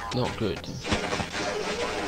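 Electricity crackles and buzzes in short sparks.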